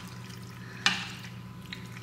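A spoon scrapes in a bowl.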